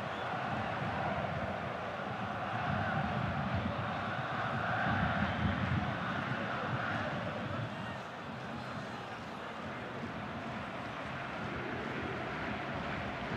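A stadium crowd cheers and roars steadily.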